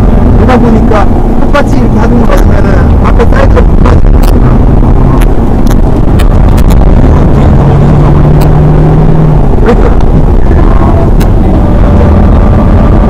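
A car engine roars loudly from inside the car as it speeds and revs.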